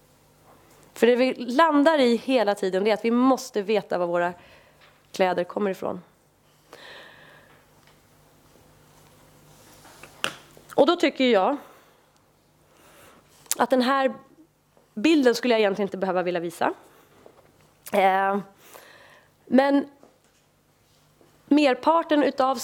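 A woman speaks calmly into a microphone, in bursts with pauses.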